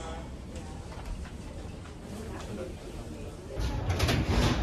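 A crisp packet rustles.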